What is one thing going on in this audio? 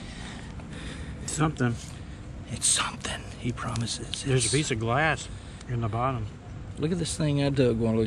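A trowel scrapes and digs into soil.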